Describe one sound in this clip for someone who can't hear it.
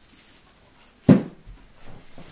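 A book thumps down close by.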